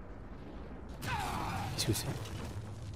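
A sweeping whoosh rushes past.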